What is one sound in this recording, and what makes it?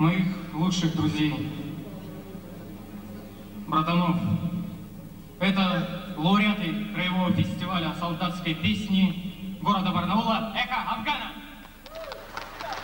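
A young man speaks into a microphone over loudspeakers, with pauses between phrases.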